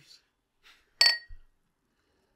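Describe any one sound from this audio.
Two drinking glasses clink together in a toast.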